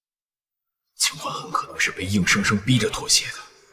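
A young man speaks in a low, firm voice close by.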